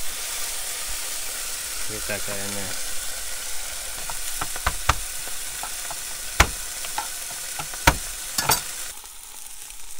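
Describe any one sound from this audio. Meat sizzles steadily in a hot frying pan.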